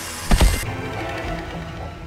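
Heavy blows land with loud, booming thuds.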